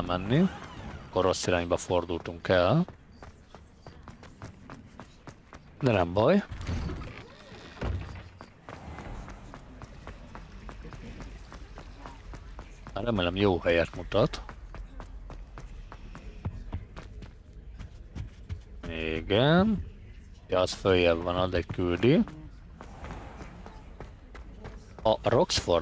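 Quick footsteps run on stone floors.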